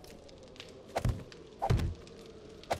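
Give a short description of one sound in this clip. Wooden frames knock into place with hollow thuds.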